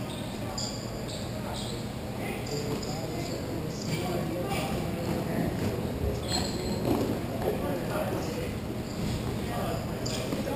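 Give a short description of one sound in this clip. Skate wheels roll and scrape across a hard floor in a large echoing hall.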